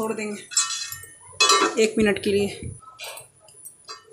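A metal lid clinks onto a pan.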